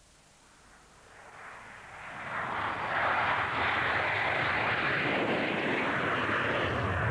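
A jet engine roars loudly on a runway, building up and then holding steady.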